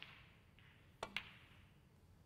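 A cue strikes a ball with a sharp click.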